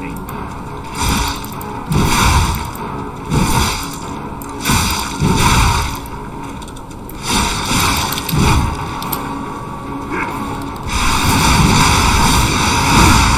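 Blades clash and slash in heavy, repeated blows.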